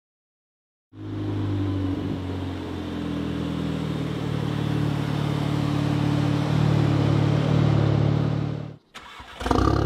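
A car engine rumbles steadily as a car approaches.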